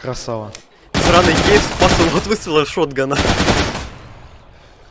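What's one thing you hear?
A rifle fires rapid bursts of loud shots.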